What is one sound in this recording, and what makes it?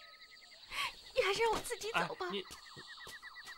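A young woman speaks emotionally, close by.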